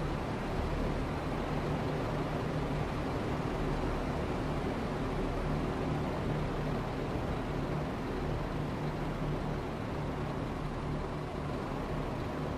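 A train rumbles past along the tracks.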